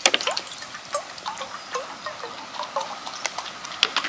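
Water pours from a plastic bottle into a bowl.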